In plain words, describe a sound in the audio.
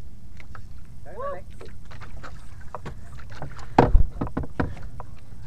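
Water splashes against the side of a small boat.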